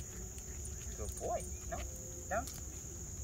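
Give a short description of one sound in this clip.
A man speaks to a dog in a short, high, coaxing voice nearby.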